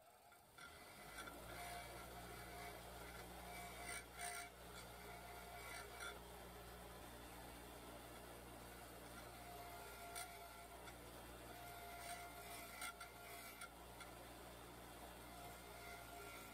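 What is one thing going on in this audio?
A metal bolt scrapes against a spinning wire wheel.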